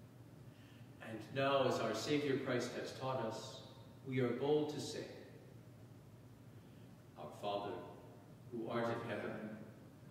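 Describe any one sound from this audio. A man speaks slowly and solemnly in a reverberant hall.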